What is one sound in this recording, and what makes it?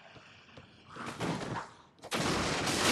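A sword swings and strikes with a loud crash.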